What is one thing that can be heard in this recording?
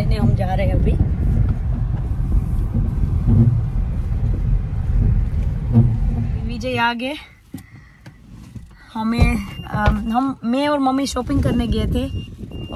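A car's engine and road noise rumble low and steady from inside the car.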